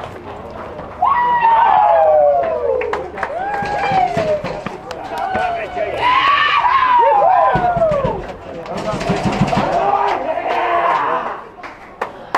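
Men in a crowd cheer and shout loudly.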